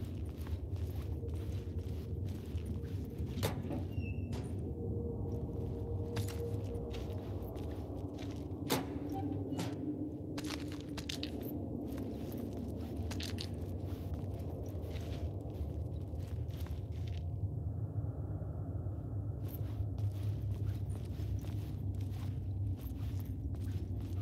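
Footsteps crunch slowly over a gritty floor.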